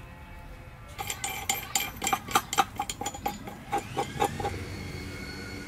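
Metal parts clink and rattle as they are fitted onto a scooter's steering tube.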